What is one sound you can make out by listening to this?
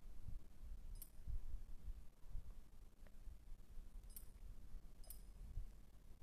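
A short bright chime rings as items are collected.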